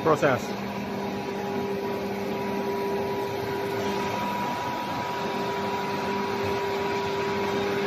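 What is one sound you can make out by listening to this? Factory machinery hums steadily in a large echoing hall.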